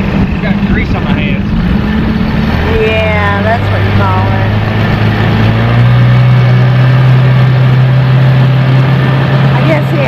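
An outboard motor drones steadily and rises in pitch.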